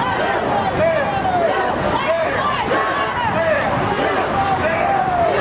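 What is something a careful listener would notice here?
A crowd of marchers chants loudly in unison outdoors.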